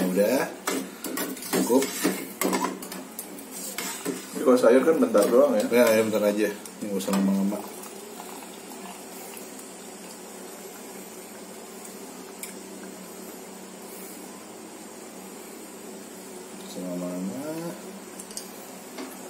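Water simmers and bubbles in a pot.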